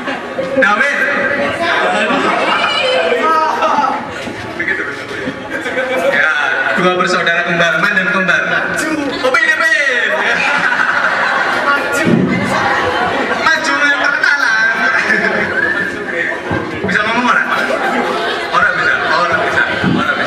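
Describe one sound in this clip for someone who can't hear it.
A young man sings loudly into a microphone through loudspeakers.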